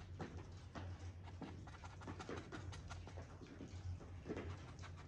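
A brush dabs and scrapes softly on a canvas.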